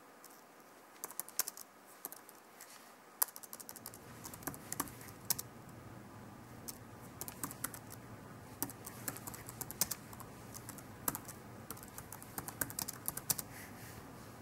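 Keys on a computer keyboard click in quick bursts of typing.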